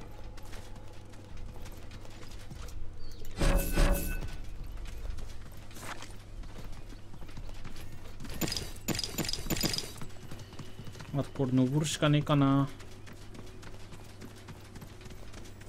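Footsteps patter quickly over the ground.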